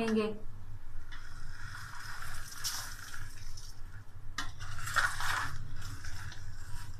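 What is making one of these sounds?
A wooden spatula stirs and scrapes chopped vegetables in a metal bowl.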